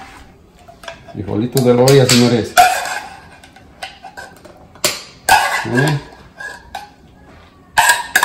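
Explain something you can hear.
A metal spoon scrapes and clinks against a pot and a plate.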